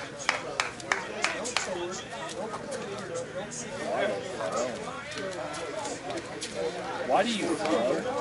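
Men talk and call out across an open field.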